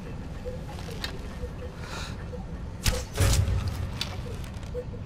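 Flames roar from a jet of fire.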